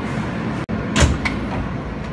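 A door clunks open with a sharp bang.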